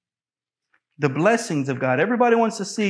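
A man speaks loudly and steadily into a microphone.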